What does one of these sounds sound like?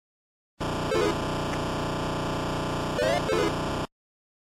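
Electronic blips sound from a video game.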